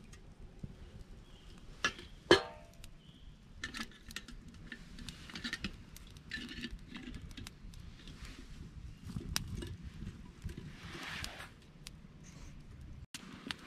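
Metal clinks as a kettle is hung and moved over a fire.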